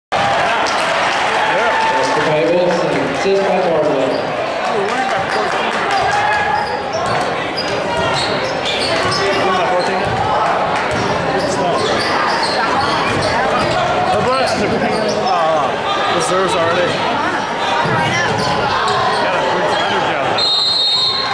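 A crowd of spectators cheers and chatters loudly in a large echoing gym.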